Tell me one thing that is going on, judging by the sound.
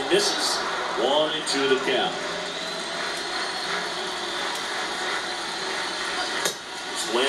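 A stadium crowd murmurs steadily through a television speaker.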